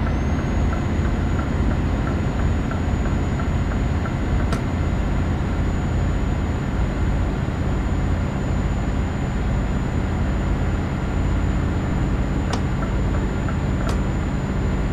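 A turn signal ticks rapidly.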